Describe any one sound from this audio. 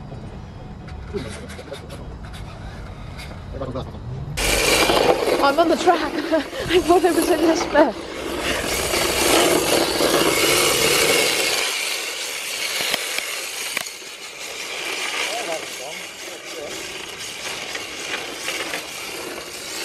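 A small electric motor whines as a toy car speeds across asphalt.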